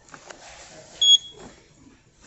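A UV nail lamp beeps once when it switches on.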